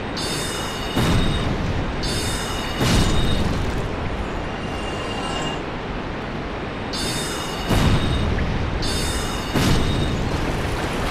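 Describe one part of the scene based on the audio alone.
A magic spell bursts with a heavy boom.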